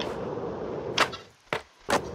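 A skateboard tail pops off the ground.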